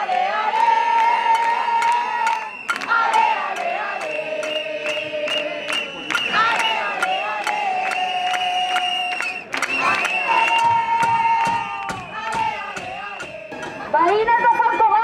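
A crowd of young people chants loudly outdoors.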